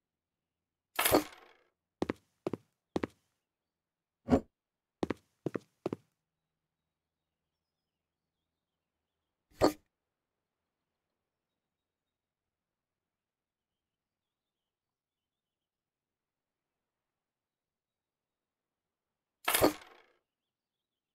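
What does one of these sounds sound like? A wooden cabinet is set down with short clunks.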